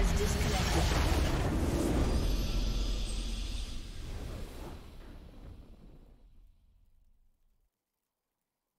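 A triumphant game fanfare plays and slowly fades to silence.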